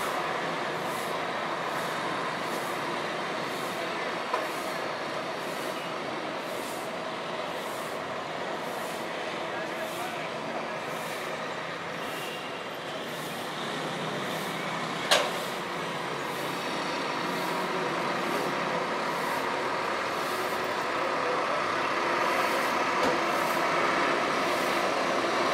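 Distant town traffic hums steadily outdoors.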